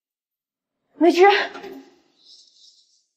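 A young woman cries out a name in alarm.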